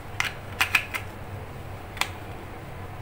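A small plastic device clicks and knocks as hands handle it.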